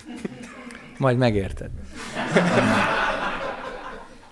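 A middle-aged man laughs into a microphone.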